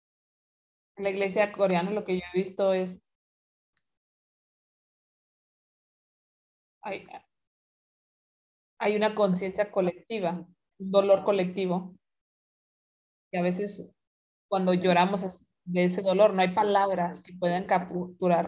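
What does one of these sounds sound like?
A young woman speaks calmly through an online call, in bursts with pauses.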